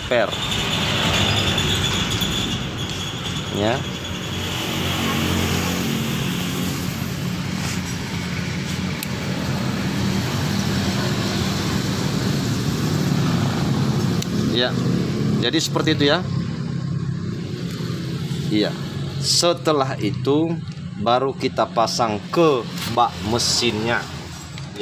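Metal parts clink and scrape together.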